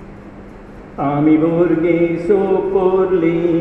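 An elderly man chants in a steady sung voice through a microphone.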